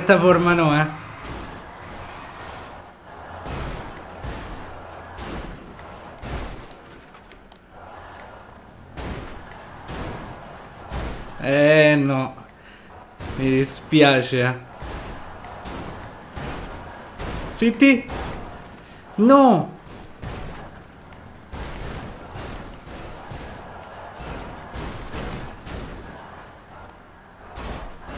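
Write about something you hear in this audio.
Car tyres screech and skid.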